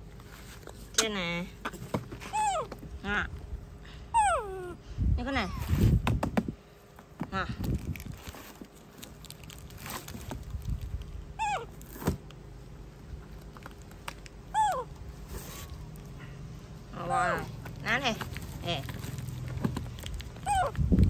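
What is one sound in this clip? A baby monkey squeaks and chirps in short high calls.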